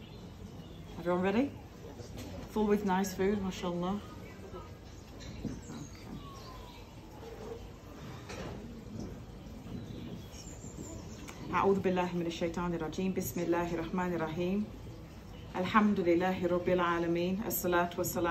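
A woman speaks calmly into a headset microphone, close by.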